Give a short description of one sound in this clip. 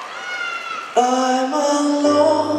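A man speaks loudly through a microphone in a large echoing hall.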